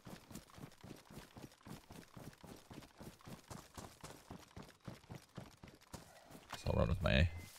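Footsteps swish quickly through tall grass.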